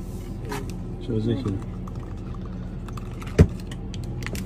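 A plastic bottle crinkles and taps as it is handled.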